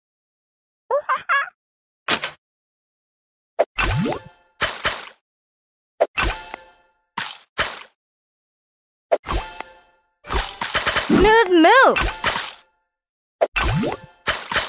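Bright game chimes and pops ring out as fruit tiles match and burst.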